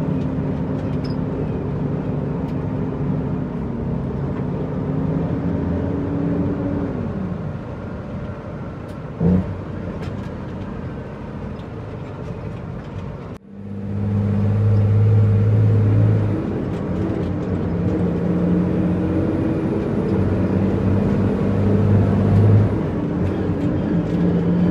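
A truck's diesel engine rumbles and drones steadily from inside the cab.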